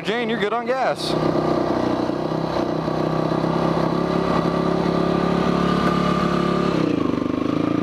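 A motorcycle engine idles with a steady rumble.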